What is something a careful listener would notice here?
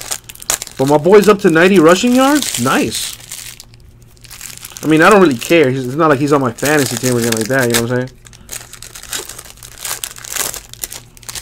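A plastic wrapper crinkles and rustles as it is handled and torn open.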